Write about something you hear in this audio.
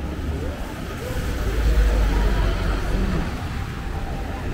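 A truck drives past close by with a deep engine rumble.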